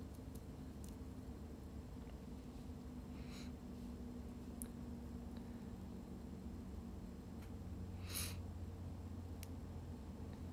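A hair straightener clicks softly as it clamps on hair.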